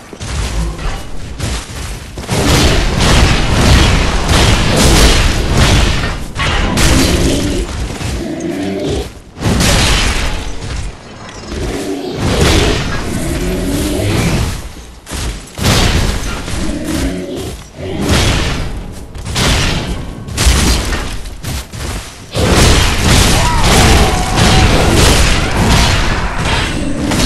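Metal blades swing and clash with loud ringing strikes.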